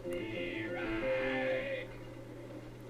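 A slot machine chimes a short winning jingle.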